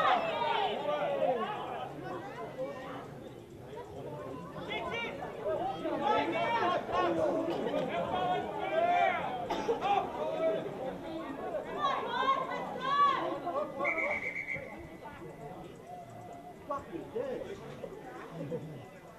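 Men shout and call out to each other outdoors on an open field.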